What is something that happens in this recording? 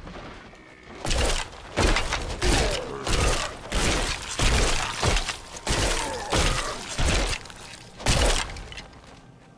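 Magic spells and weapon blows strike and crack in quick bursts.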